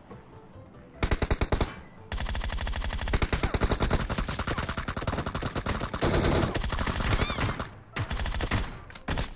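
Rapid bursts of gunfire crack loudly and close by.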